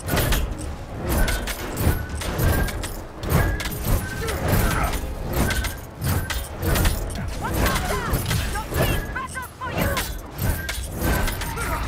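Heavy impacts thud repeatedly during a fight.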